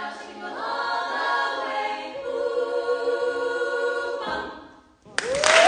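A group of young women sings together in harmony.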